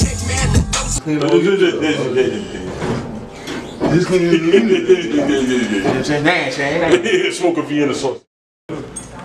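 Two young men talk with animation close by.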